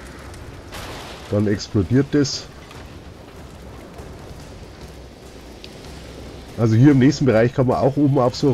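Fire crackles and roars nearby.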